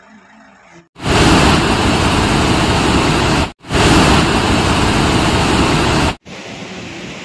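Water roars loudly as it pours through open dam gates.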